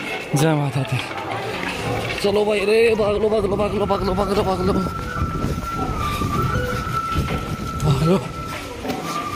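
A crowd of people talks nearby.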